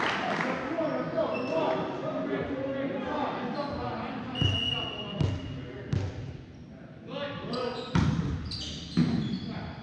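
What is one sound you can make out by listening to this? Players call out to each other across an echoing gym.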